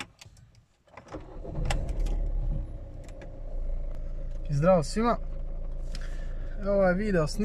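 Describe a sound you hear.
A car engine cranks, starts and settles into a steady idle.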